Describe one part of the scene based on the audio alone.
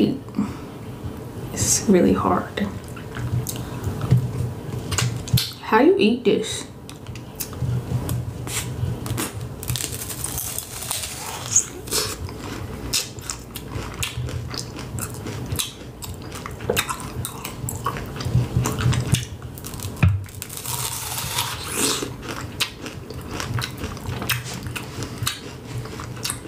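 A young woman chews with wet, crackling mouth sounds close to a microphone.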